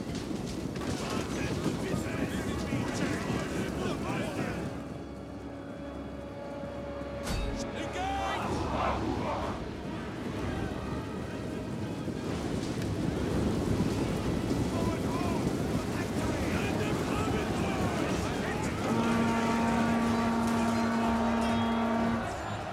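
A battle rages with a dense din of shouting and clashing weapons.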